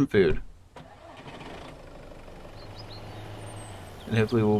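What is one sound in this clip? A car engine starts and runs with a low steady hum.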